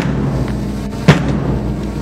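A guard's boots stamp on paving.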